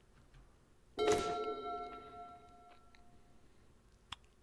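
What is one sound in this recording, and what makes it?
A bright electronic chime rings out in a card game as a card is played.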